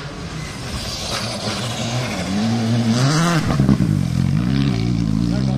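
Gravel sprays and rattles under spinning tyres.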